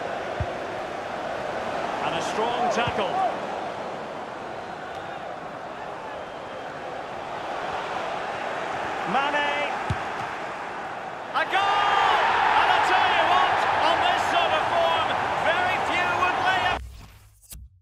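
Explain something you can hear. A large stadium crowd murmurs steadily and then roars loudly in cheers.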